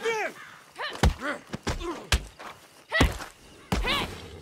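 Fists land heavy punches in a fight.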